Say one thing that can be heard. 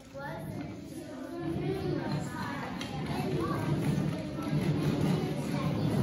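Wheels of scooter boards rumble across a wooden floor.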